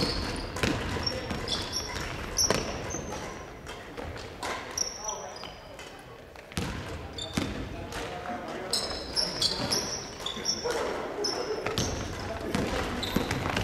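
A basketball bounces on a hard floor with echoing thuds.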